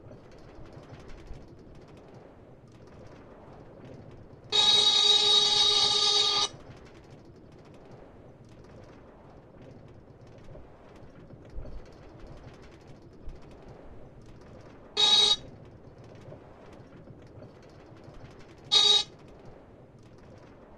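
A cart rolls steadily along rails.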